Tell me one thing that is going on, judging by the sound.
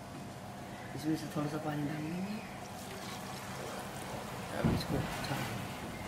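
Liquid pours and splashes into a jug.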